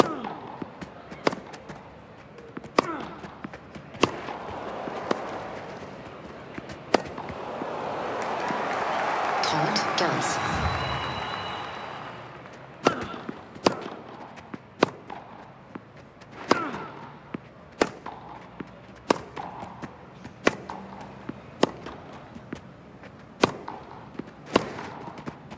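Tennis balls are struck sharply by rackets in a quick back-and-forth rally.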